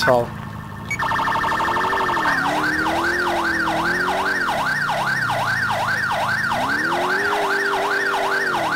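A truck engine hums and revs as it drives.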